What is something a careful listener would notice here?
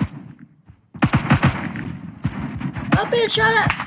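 Rapid gunshots fire from an automatic rifle.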